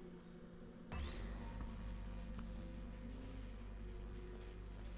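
A low electric hum starts suddenly and drones steadily.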